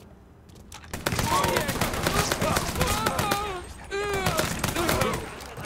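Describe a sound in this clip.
A submachine gun fires rapid bursts.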